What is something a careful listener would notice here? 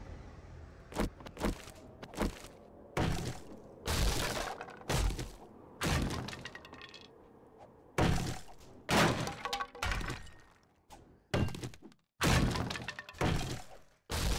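A wooden club thuds repeatedly against a wooden roof.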